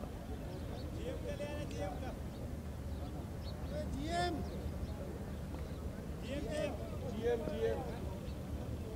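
Men call out to each other in the distance, outdoors.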